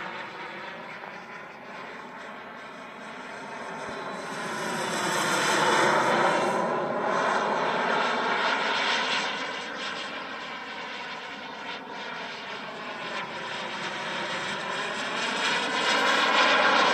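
A jet roars overhead, its engine noise swelling and fading as it passes.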